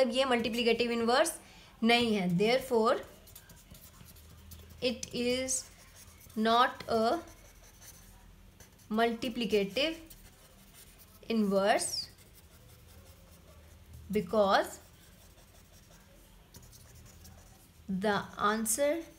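A marker scratches softly across paper.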